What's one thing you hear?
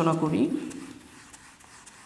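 A felt eraser rubs across a whiteboard.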